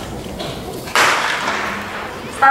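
A starting pistol fires once, echoing outdoors.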